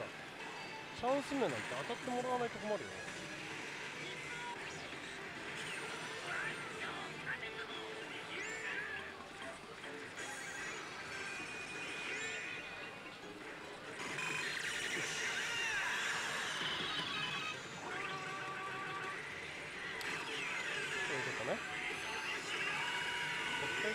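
A slot machine plays electronic music and sound effects.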